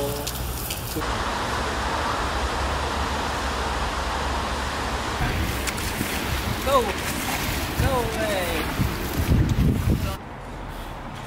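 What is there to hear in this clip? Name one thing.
A stiff brush scrubs wet paving stones.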